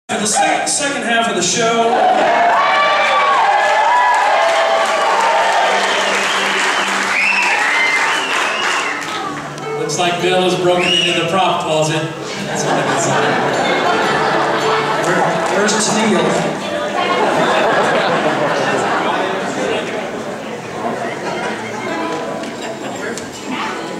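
A live band plays a lively country tune.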